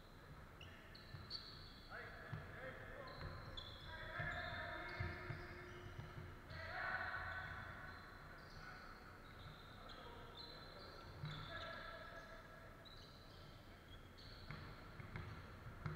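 A basketball bounces repeatedly on the floor.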